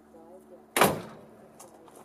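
A hand taps on a car hood.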